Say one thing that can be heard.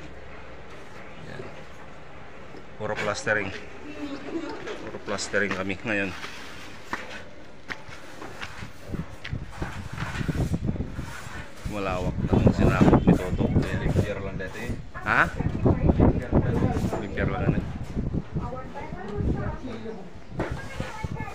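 A trowel scrapes plaster across a wall.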